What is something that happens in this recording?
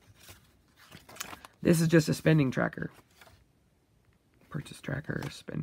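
Paper pages rustle and flip close by.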